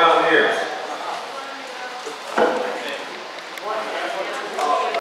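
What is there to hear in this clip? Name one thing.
A man speaks in a room with some echo.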